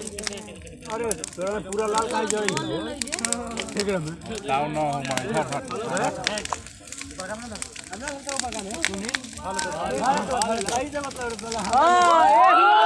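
A bonfire crackles and pops.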